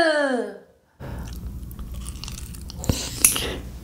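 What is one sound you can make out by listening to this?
A young woman chews food loudly close to a microphone.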